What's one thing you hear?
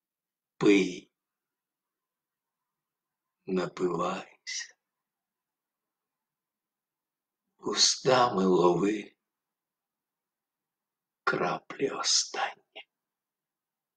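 A middle-aged man speaks calmly in short bursts, close to a microphone.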